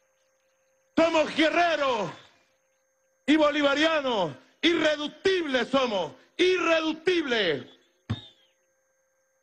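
A man speaks forcefully into a microphone over a loudspeaker, in a large open space with echo.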